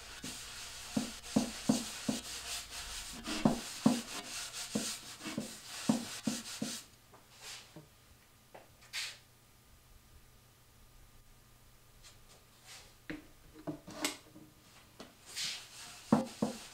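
A cloth rubs briskly over a wooden surface.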